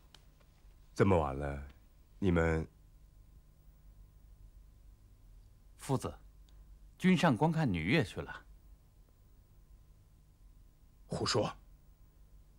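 An elderly man speaks slowly in short phrases.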